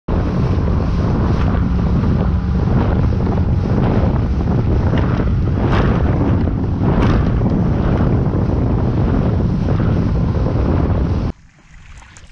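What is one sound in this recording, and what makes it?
Strong wind roars and buffets loudly against the microphone.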